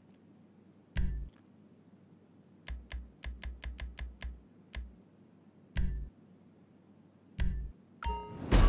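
Short electronic menu clicks tick in quick succession.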